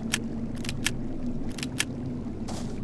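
Short sharp menu clicks tick several times in quick succession.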